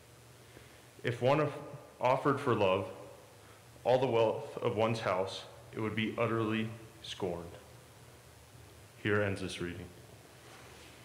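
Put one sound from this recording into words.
A young man reads out calmly through a microphone in an echoing hall.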